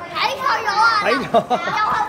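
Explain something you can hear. A young boy laughs and talks loudly close by.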